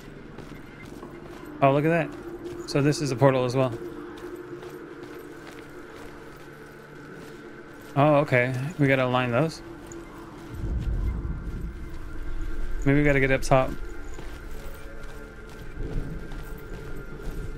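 Footsteps tread over stone and grass.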